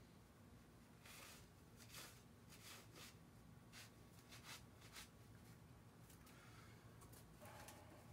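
Bare feet shuffle and step on a hard floor.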